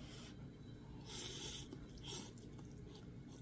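A woman slurps noodles.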